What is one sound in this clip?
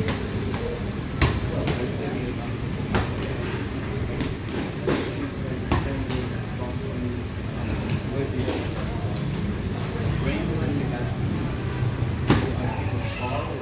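Gloved punches and kicks thud sharply against pads in a large echoing room.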